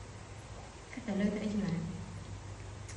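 A woman speaks briefly and softly nearby.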